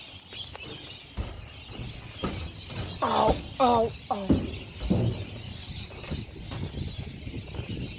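Footsteps thud on a metal roof.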